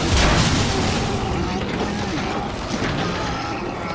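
A monstrous creature growls and snarls.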